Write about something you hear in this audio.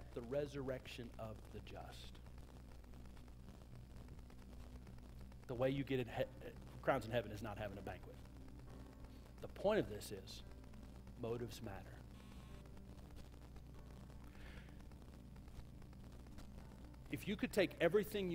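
A man speaks with animation into a microphone, with long pauses, in a large room.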